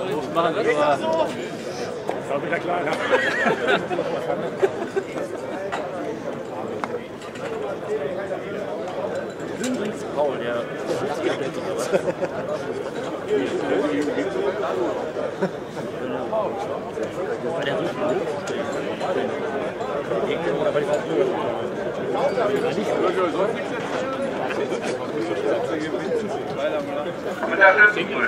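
A man speaks steadily into a microphone outdoors, heard over a loudspeaker.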